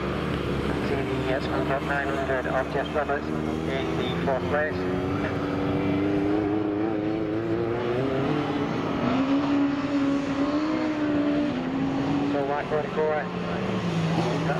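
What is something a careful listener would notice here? Several racing car engines roar and rev around a dirt track outdoors.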